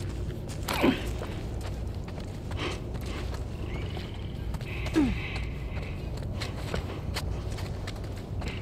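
Footsteps crunch softly over debris.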